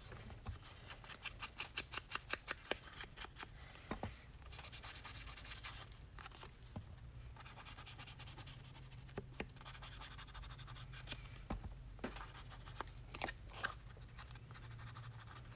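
An ink pad dabs and rubs against paper in quick, soft taps.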